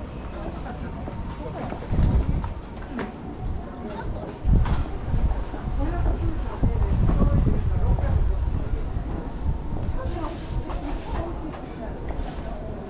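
Footsteps of passers-by tap on a paved street outdoors.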